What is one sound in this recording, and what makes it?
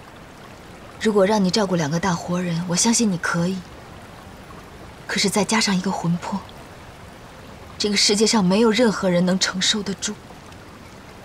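A woman speaks calmly and softly nearby.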